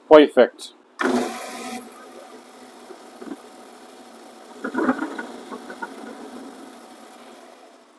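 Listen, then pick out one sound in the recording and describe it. A lathe spins with a steady whir.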